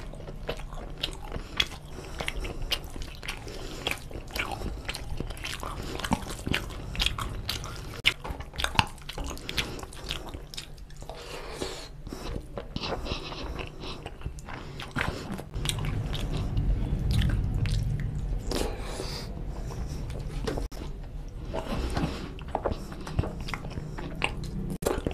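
A man chews food wetly and loudly close to a microphone.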